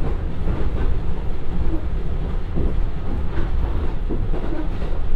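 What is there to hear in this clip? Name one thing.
Train wheels clatter and rumble on the rails.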